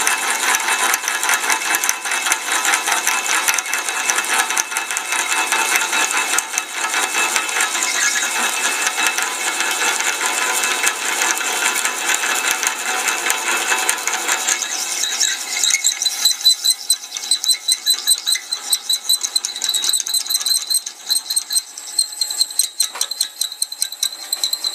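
A drill bit grinds steadily into metal.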